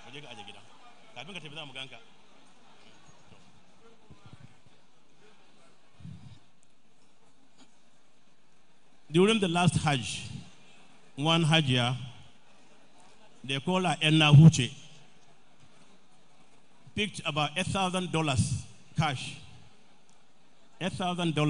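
An elderly man speaks through a microphone and loudspeakers in short bursts, echoing in a large hall.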